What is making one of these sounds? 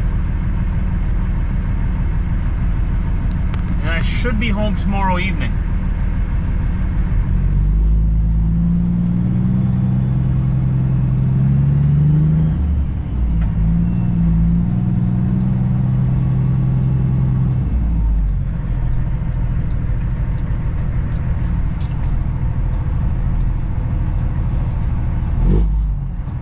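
A truck engine rumbles low and steady from inside the cab.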